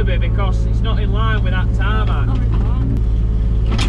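A man talks loudly over the engine noise.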